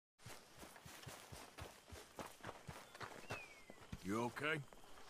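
Boots thud as a man runs on a dirt path.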